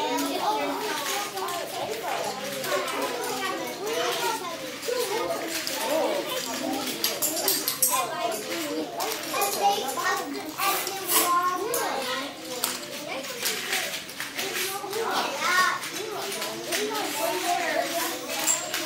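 An adult woman speaks calmly with children nearby.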